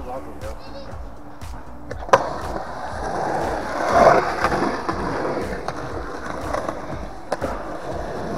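Skateboard wheels roll and rumble on concrete.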